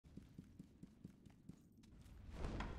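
Soft footsteps tap on a wooden floor.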